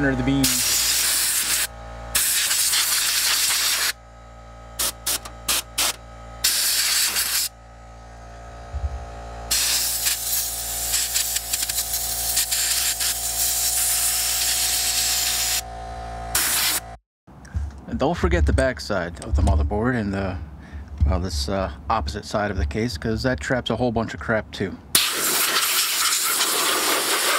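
Compressed air hisses loudly in bursts from an air gun nozzle.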